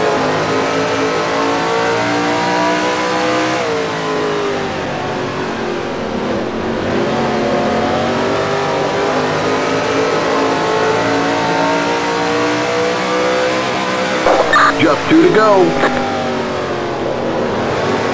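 A race car engine roars steadily, its pitch rising and falling with the gears and corners.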